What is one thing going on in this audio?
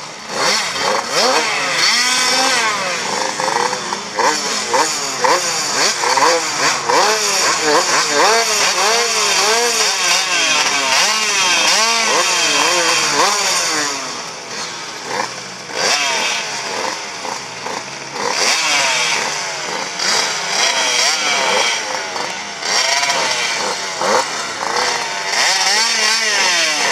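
Motorcycle engines rev up and down loudly, close by, outdoors.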